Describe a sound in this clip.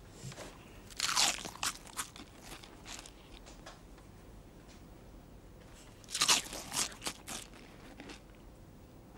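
A boy crunches on a sweet while eating.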